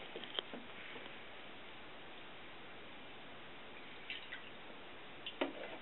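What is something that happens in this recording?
Milk pours into a glass dish.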